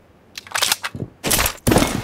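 A smoke grenade bursts and hisses.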